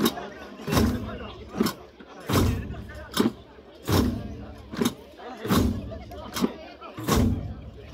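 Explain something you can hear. Many frame drums are struck together in a steady, heavy rhythm, outdoors.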